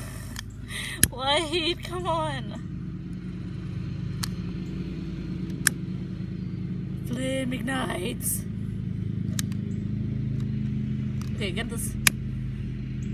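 A lighter clicks sharply a few times.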